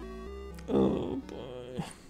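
Retro electronic game music plays.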